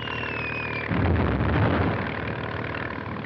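An explosion bursts with a deep roar.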